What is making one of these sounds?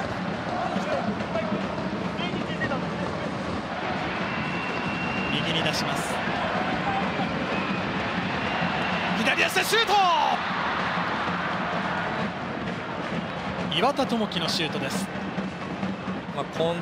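A large stadium crowd roars and chants steadily outdoors.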